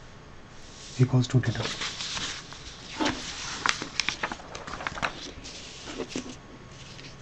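Sheets of paper rustle as they are moved.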